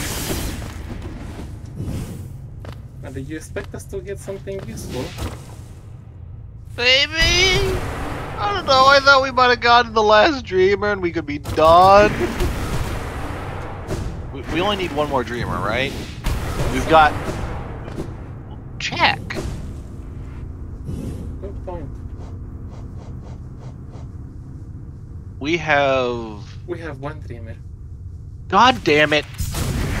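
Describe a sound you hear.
Game sound effects swish and thud.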